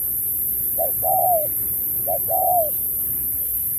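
A dove coos softly nearby, in two short low calls.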